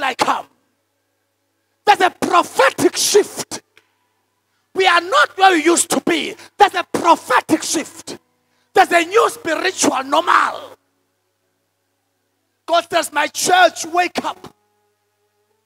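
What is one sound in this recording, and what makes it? A man speaks with animation into a microphone, in bursts with pauses.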